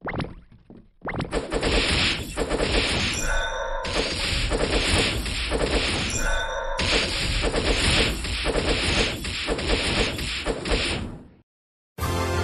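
Video game battle sound effects clash and thud.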